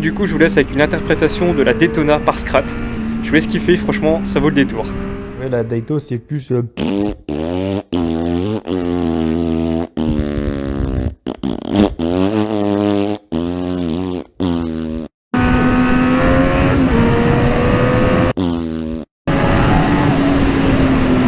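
A motorcycle engine roars close by, revving up and dropping as it shifts gears.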